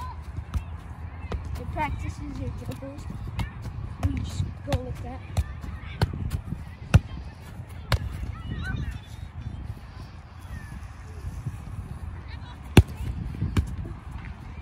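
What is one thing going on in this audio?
A child kicks a ball with repeated sharp thumps.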